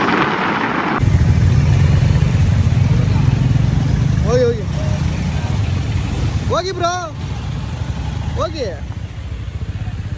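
Motorcycle engines rumble low and steadily nearby.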